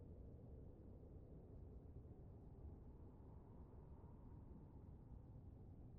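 Wind blows with a steady low rumble.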